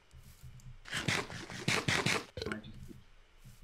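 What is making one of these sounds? A fist thumps repeatedly against wood.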